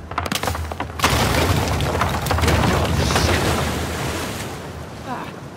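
Rocks crumble and tumble down a cliff.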